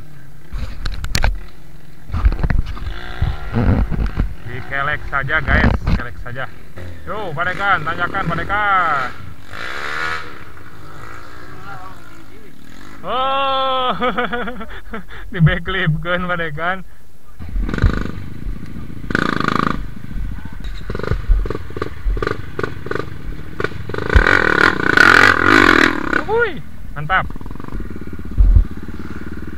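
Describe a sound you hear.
Dirt bike engines rev up and down nearby.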